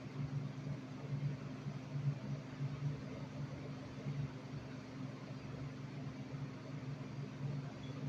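A young girl hums softly close to the microphone.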